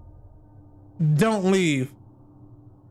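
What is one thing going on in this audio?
A man exclaims loudly into a nearby microphone.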